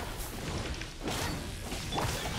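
Fiery blasts whoosh and crackle.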